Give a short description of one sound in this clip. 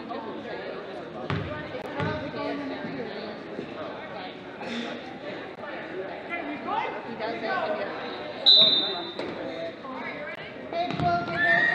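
A crowd murmurs in an echoing gym.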